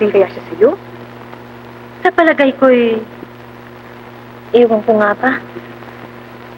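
A woman speaks with feeling.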